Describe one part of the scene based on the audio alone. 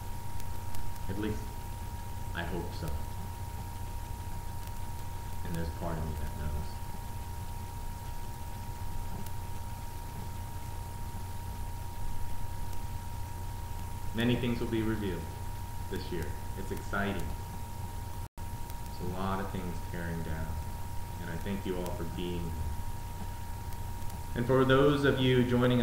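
A man speaks calmly and slowly nearby, with long pauses.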